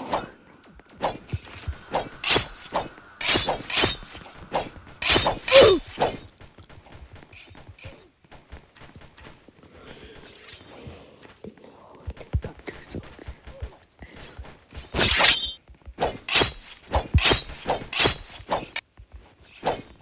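Swords slash and clash in quick, sharp strikes.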